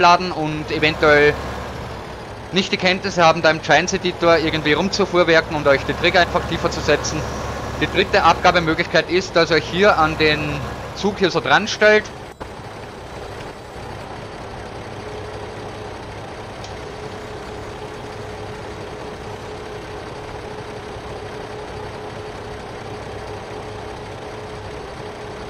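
A tractor engine idles with a steady low hum.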